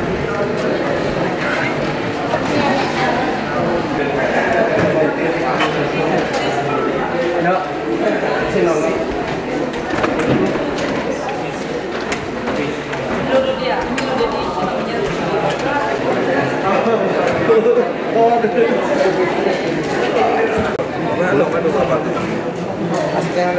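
A crowd of men and women chatter throughout in a large echoing hall.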